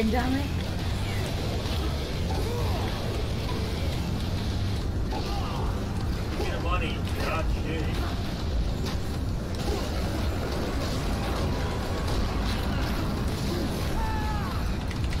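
Zombies groan and moan.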